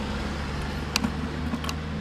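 A car engine hums as a car drives along the road ahead.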